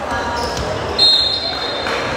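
A volleyball is served with a sharp smack.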